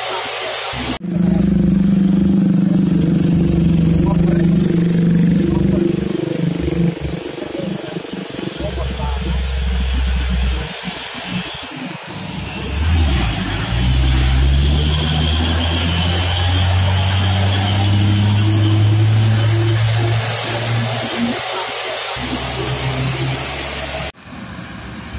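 A heavy truck's diesel engine rumbles and strains as it climbs slowly nearby.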